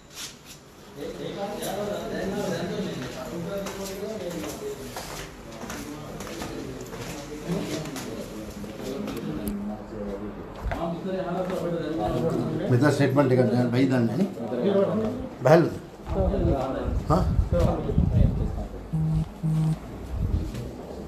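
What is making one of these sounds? Several men talk loudly and argue in a room.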